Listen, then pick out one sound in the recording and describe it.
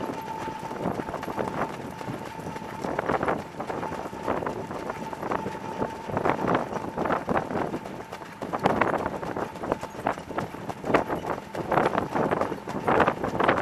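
Wind rushes past loudly, as if outdoors at speed.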